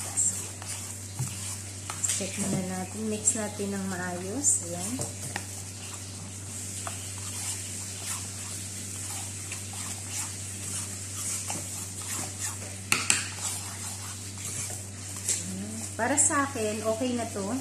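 A metal spoon scrapes and clinks against a ceramic bowl.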